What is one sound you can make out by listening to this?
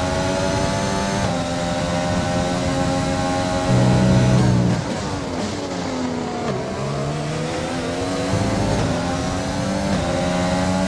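A racing car engine screams at high revs, dropping in pitch as it brakes and rising again as it shifts through the gears.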